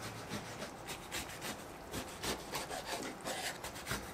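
A knife chops through kimchi on a wooden board.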